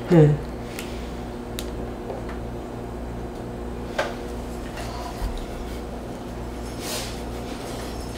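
A knife cuts through soft flesh.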